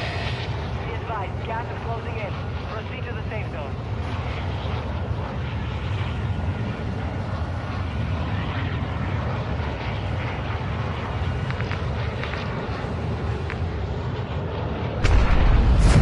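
A large plane's engines drone steadily.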